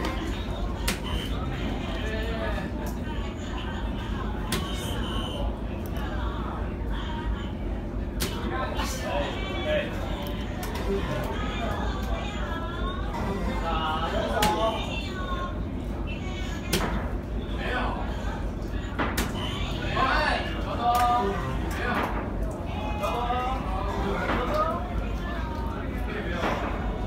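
Soft-tip darts thud into an electronic dartboard.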